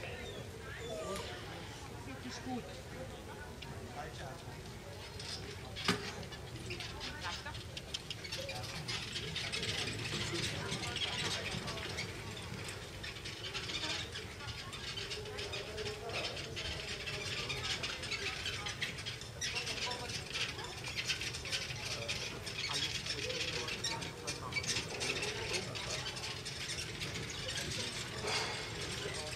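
A horse's hooves clop on grass as it pulls a carriage.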